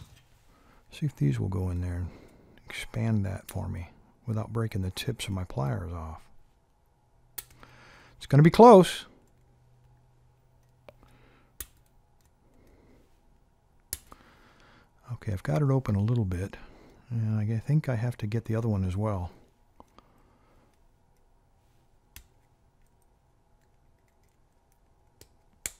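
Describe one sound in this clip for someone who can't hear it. Small metal parts click as pliers work at a lock.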